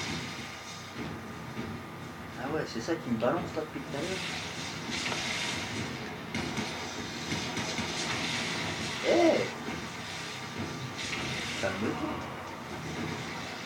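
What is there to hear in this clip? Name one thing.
Video game battle sounds with blasts and clashes play loudly from a television speaker.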